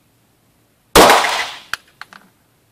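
A pistol fires a single loud shot that echoes in a hard-walled room.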